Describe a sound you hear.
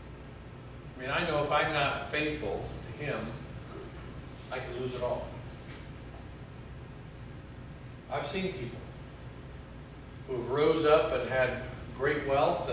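A middle-aged man speaks calmly in pauses, as if to an audience.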